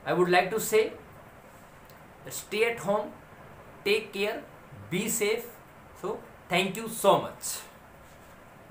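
A man speaks calmly and clearly into a close microphone, explaining.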